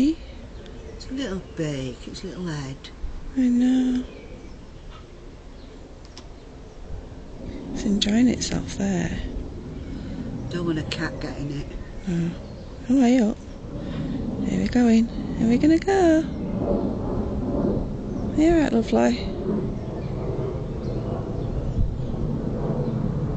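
A small bird chirps close by.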